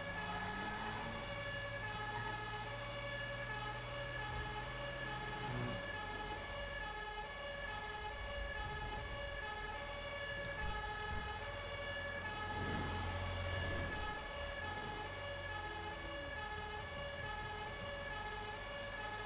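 A fire engine's two-tone siren wails.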